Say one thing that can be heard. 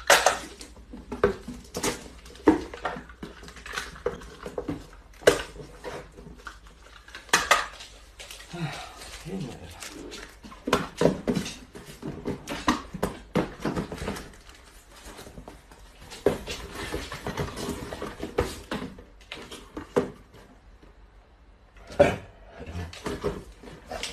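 Cardboard boxes rustle and knock as they are handled.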